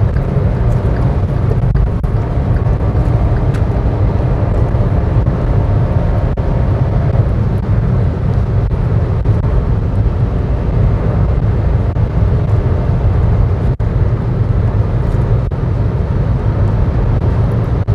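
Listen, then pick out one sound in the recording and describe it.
Tyres roll on smooth asphalt with a steady rumble.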